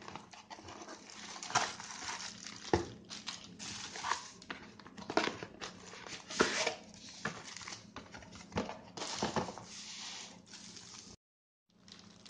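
Plastic wrapping crinkles and rustles as hands handle it.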